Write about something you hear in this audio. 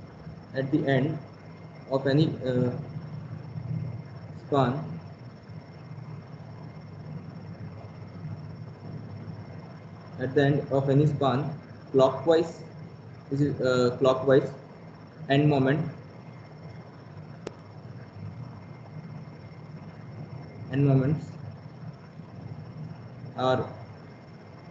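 A man speaks slowly and calmly over an online call, pausing often.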